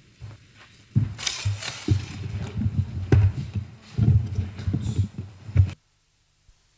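A microphone thumps and rustles as it is handled.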